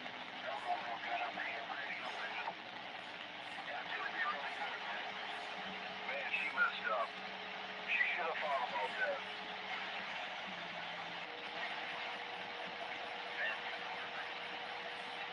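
Static hisses and crackles steadily from a radio receiver.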